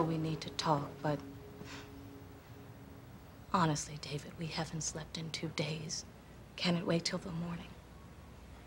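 A woman speaks quietly and seriously, close by.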